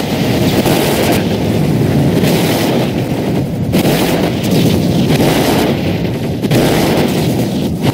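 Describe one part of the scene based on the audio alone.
Explosions burst with a loud whoosh.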